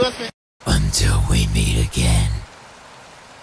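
A young man speaks loudly and with animation close to the microphone.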